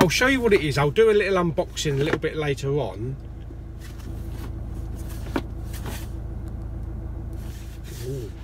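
A cardboard box rustles as it is handled.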